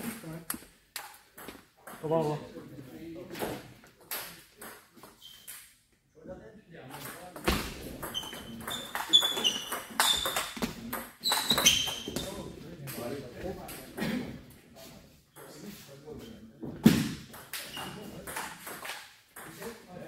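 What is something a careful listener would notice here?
A ping-pong ball clicks back and forth on paddles and a table in a large echoing hall.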